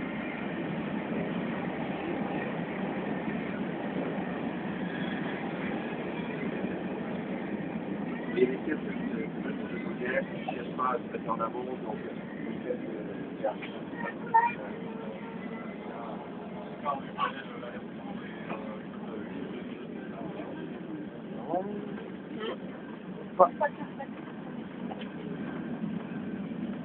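A high-speed train rumbles and hums steadily from inside the carriage.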